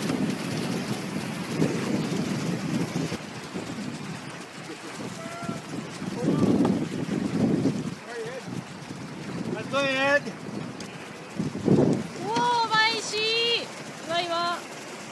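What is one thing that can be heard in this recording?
River water rushes and splashes over rapids.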